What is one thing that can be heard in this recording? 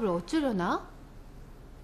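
A young woman gasps in surprise.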